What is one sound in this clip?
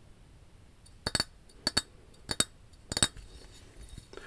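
Fingernails tap on a glass jar close to a microphone.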